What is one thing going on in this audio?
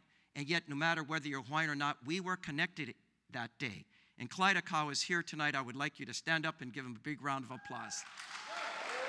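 An older man speaks with animation through a microphone in a large room.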